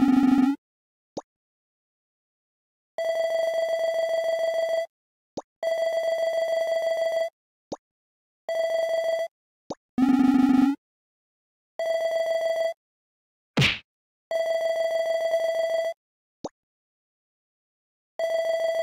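A buzzy electronic tone chirps in short bursts.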